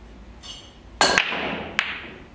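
A cue ball strikes a rack of pool balls with a sharp crack.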